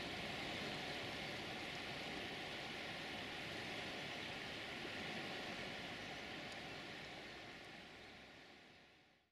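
A river rushes steadily nearby and then fades away.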